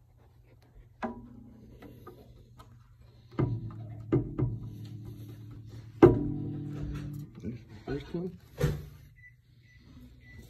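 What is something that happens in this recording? Guitar strings ring out when a guitar is bumped.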